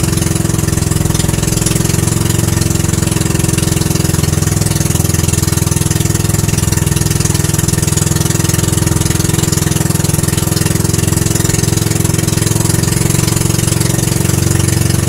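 A boat engine drones loudly and steadily.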